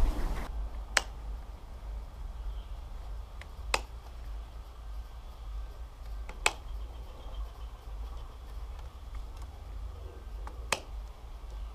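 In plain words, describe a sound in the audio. Cable ties snap sharply as they are snipped.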